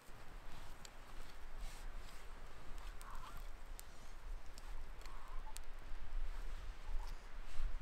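A small fire crackles and pops.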